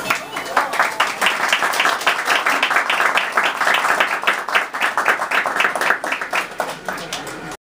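People clap their hands in a quick, steady rhythm close by.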